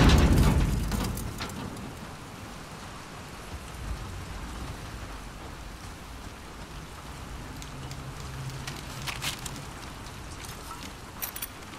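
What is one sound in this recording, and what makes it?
Footsteps tread slowly on a hollow metal floor.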